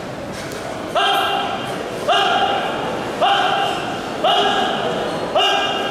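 A gong is struck several times, ringing on after each stroke.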